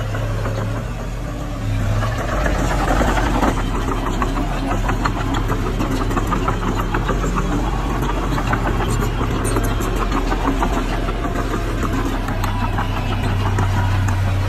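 A bulldozer engine rumbles steadily close by.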